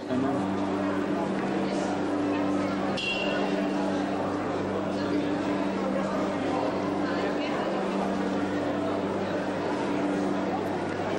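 A large crowd of men and women chatters all around.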